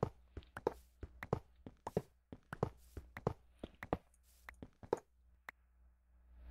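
Quick tapping clicks sound as blocks are broken.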